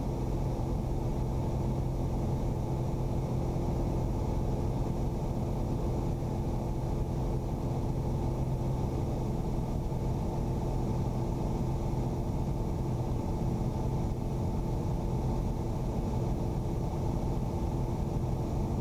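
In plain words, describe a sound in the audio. A small propeller plane's engine drones loudly and steadily.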